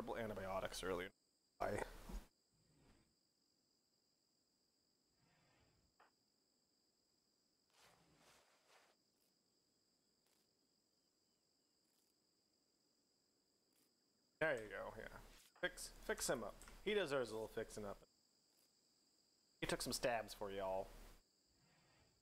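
A young man talks casually into a close microphone, in bursts with pauses.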